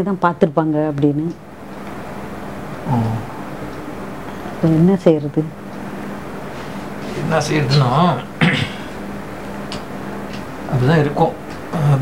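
A man talks quietly and closely.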